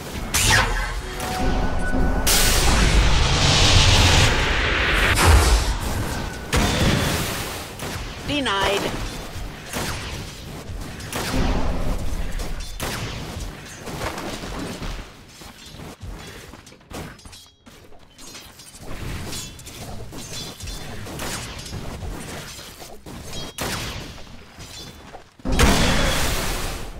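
Weapons clash and strike over and over.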